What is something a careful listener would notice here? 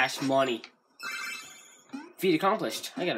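A short electronic jingle chimes.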